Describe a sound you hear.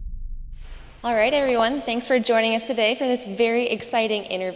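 A woman speaks clearly through a microphone in a large room.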